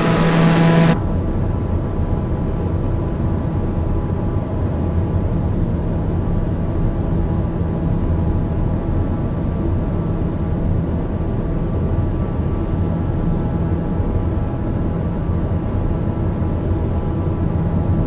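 A single-engine turboprop hums muffled inside the cabin.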